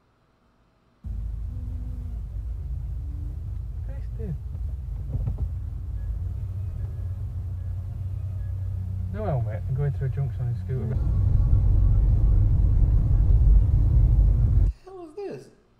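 A car engine hums steadily with road rumble while driving.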